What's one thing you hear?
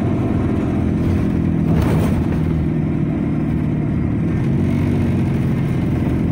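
A car passes close by outside.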